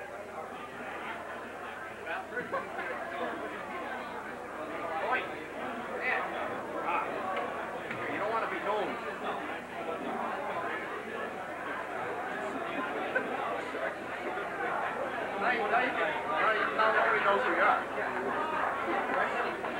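A middle-aged man speaks animatedly into a microphone.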